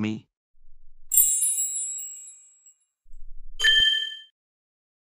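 A magical sparkling chime shimmers.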